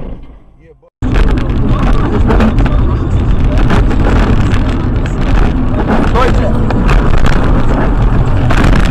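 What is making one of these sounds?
A car engine hums while driving on a road.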